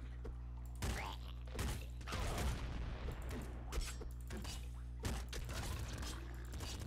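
Retro video game gunfire and explosions crackle in quick bursts.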